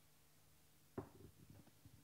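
A glass is set down with a knock.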